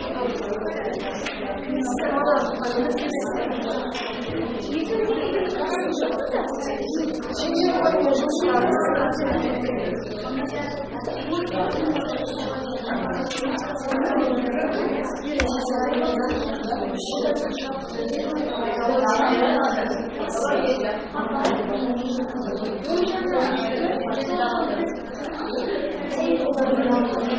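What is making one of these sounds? Children chatter quietly in a room.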